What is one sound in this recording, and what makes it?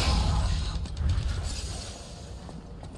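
A magic spell crackles and hums.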